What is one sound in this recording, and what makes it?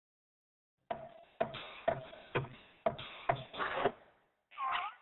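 A small lamp hops and thumps down in springy bounces.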